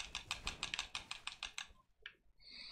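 Quick, sharp clicking hits sound as a small game fighter attacks.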